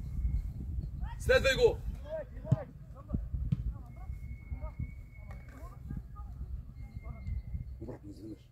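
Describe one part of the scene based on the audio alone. Young men shout to each other outdoors, some close and some farther off.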